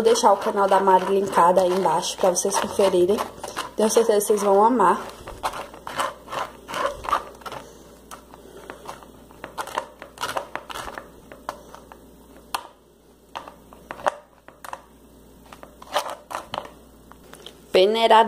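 A spoon scrapes and taps against a mesh strainer.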